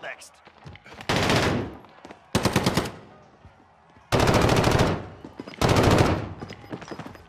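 Automatic gunfire rattles in short, rapid bursts.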